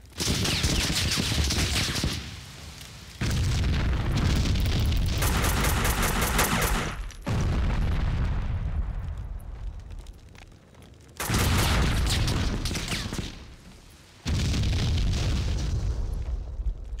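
Explosions boom and roar loudly.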